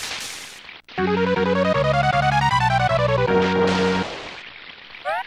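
A short, cheerful electronic jingle plays.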